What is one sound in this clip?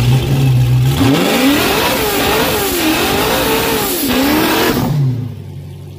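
A car engine revs up and down sharply.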